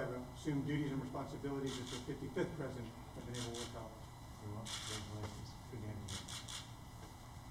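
A man speaks quietly at a distance.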